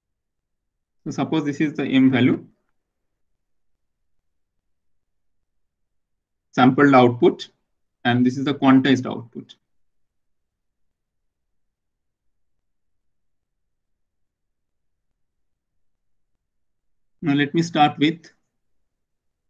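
A man speaks calmly into a microphone, in short bursts with long pauses.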